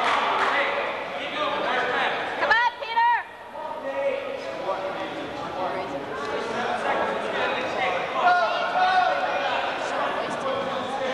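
Spectators shout and cheer loudly in an echoing gym.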